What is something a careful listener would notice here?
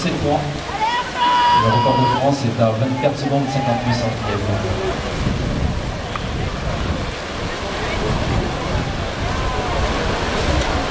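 Swimmers splash and churn through the water.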